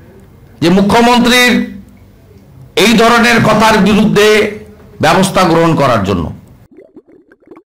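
A man speaks forcefully into a microphone.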